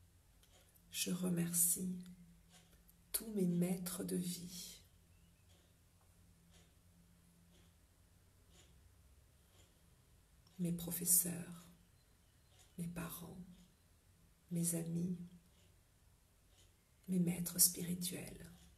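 A middle-aged woman speaks calmly in short phrases, close to the microphone.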